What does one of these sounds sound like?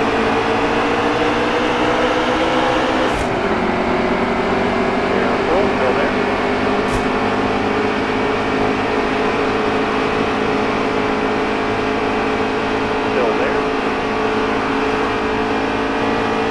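Racing truck engines roar steadily at high speed.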